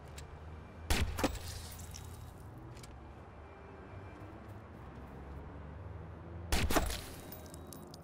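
Gunshots bang sharply a few times.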